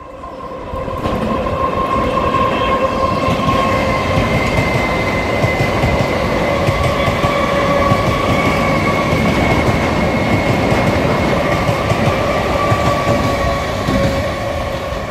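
An electric train rumbles past close by on the tracks.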